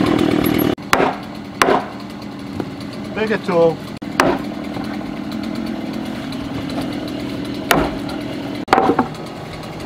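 A sledgehammer bangs against wood in sharp blows outdoors.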